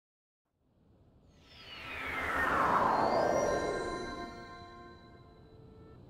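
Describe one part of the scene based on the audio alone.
A shimmering magical whoosh sweeps down in pitch.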